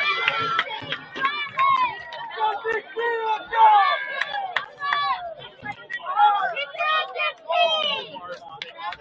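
A crowd of spectators shouts and cheers nearby, outdoors.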